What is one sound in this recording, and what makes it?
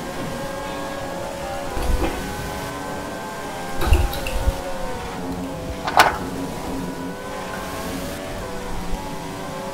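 Racing car engines whine steadily at high revs.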